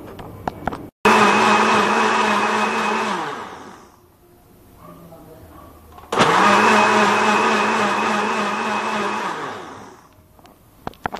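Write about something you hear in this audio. A blender whirs loudly, blending liquid, then winds down.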